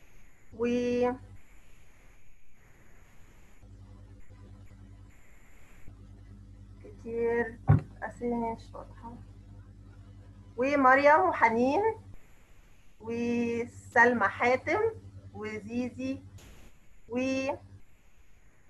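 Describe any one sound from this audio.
A child speaks briefly over an online call.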